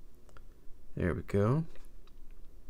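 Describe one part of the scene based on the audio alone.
A game console plays a short two-note startup chime.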